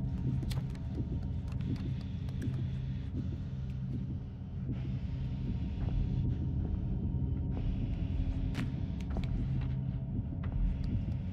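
Light footsteps patter on a hard floor.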